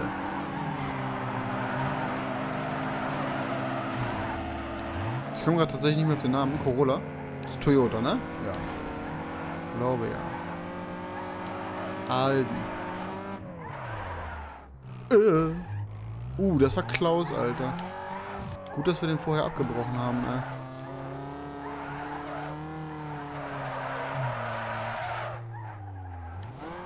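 Tyres screech as a car drifts around bends.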